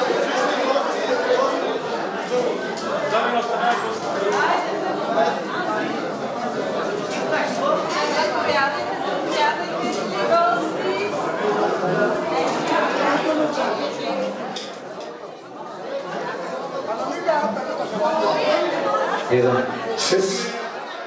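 A crowd of men and women chatters loudly in a large echoing hall.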